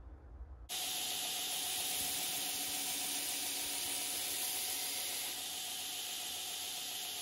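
A belt grinder runs with a steady whirring hiss.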